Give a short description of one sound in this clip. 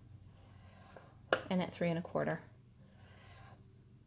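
A tool scrapes lightly along card.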